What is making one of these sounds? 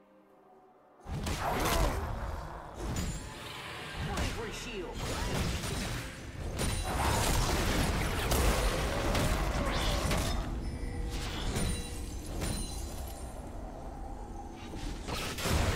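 Spell effects and sword clashes crackle and burst in a fierce game battle.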